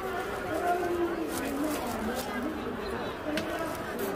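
A plastic bag rustles and crinkles up close.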